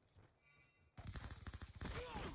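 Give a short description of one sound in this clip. A pistol fires sharply.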